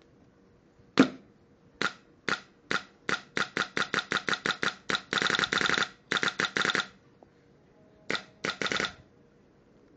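An electronic paintball marker fires in rapid bursts of air.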